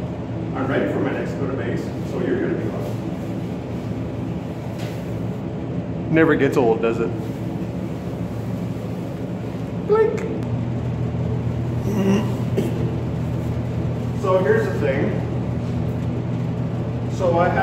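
A middle-aged man talks calmly and close by.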